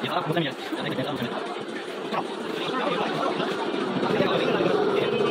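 Many people chatter in a busy indoor crowd.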